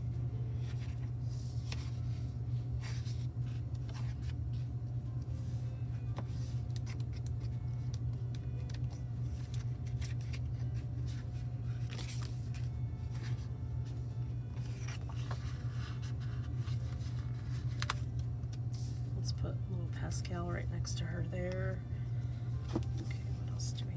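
Paper pages rustle and slide as they are shuffled by hand.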